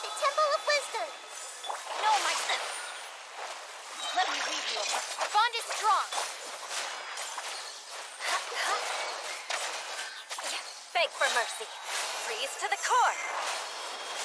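Magic blasts burst and crackle in quick succession.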